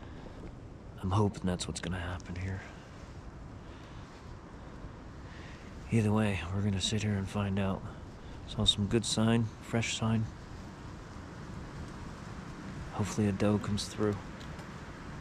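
A middle-aged man speaks quietly and calmly close by, in short bursts.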